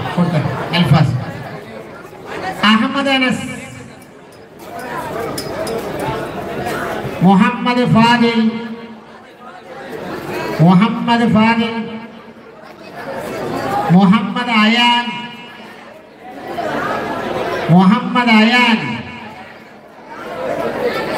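A man chants loudly through a microphone and loudspeakers in repeated phrases.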